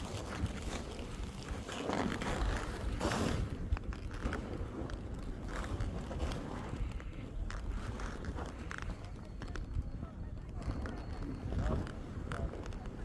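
Strong wind gusts and roars loudly outdoors.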